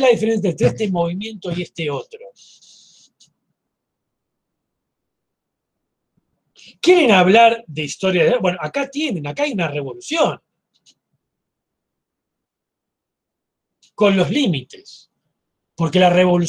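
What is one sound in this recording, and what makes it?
A middle-aged man speaks calmly through an online call, pausing between phrases.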